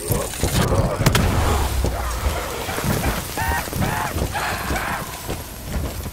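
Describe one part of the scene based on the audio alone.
Zombies groan and snarl.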